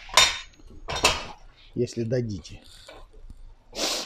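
Metal parts of a tyre tool clunk.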